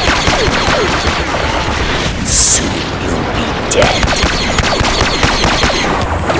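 Laser bolts streak past with high whining sounds.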